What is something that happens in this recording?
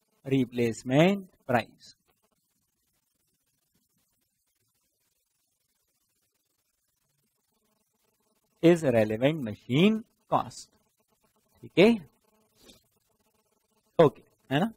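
A man speaks in a lecturing tone, with pauses.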